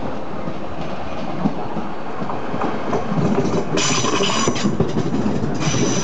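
A train rumbles in and rolls past close by, with wheels squealing.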